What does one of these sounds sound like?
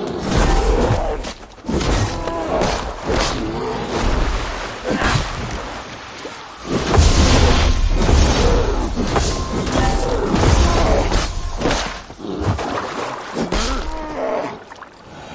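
A black bear growls and roars.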